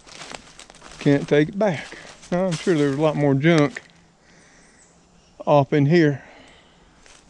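An elderly man talks calmly close by, outdoors.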